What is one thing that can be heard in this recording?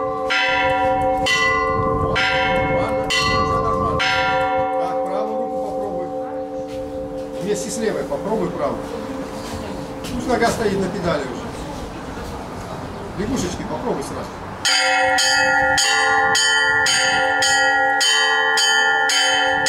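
Small church bells ring out in a quick, lively pattern, then stop and start again.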